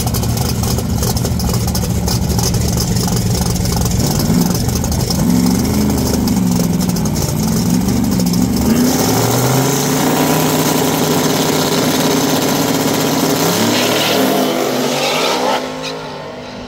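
A race car engine idles close by with a loud, choppy rumble, its revs swelling and dropping.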